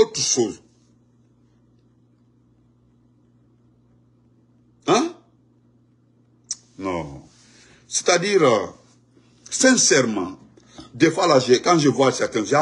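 A man speaks with animation close to a microphone, with pauses.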